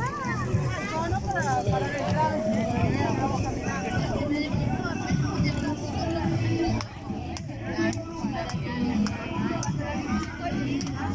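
A crowd of women and men chat and call out nearby outdoors.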